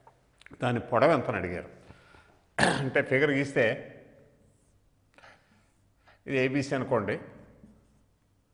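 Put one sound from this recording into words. An elderly man speaks calmly into a close microphone, in short phrases.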